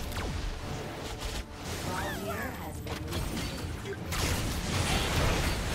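Game spell effects whoosh and crackle in a fast battle.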